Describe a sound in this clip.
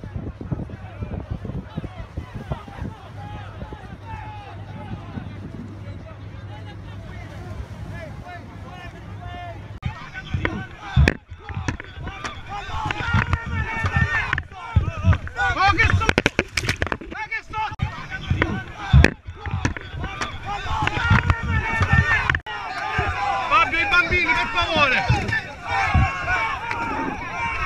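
A crowd of men shout and call out close by.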